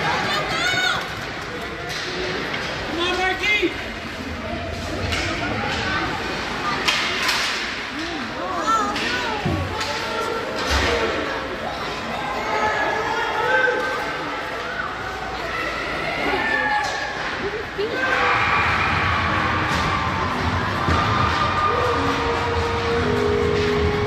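Spectators in the stands call out and cheer.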